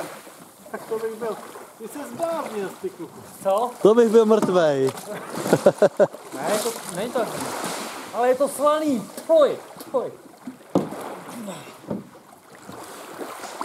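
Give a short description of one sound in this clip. Water splashes around a swimming man.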